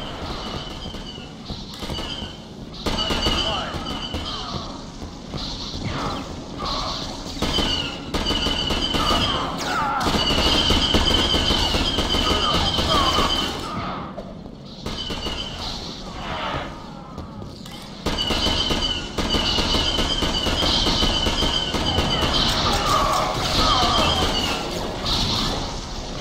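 Laser rifles fire in rapid bursts.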